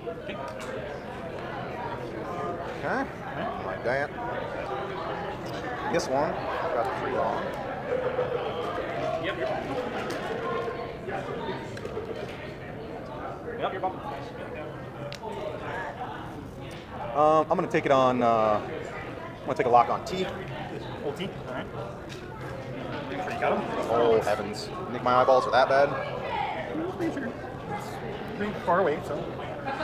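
Men talk together nearby.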